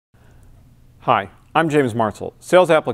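A man speaks calmly and clearly into a nearby microphone.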